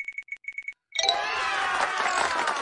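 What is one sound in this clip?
A cheerful celebratory jingle bursts out.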